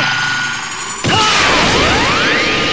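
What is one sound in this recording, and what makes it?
A glowing energy ball hums and crackles.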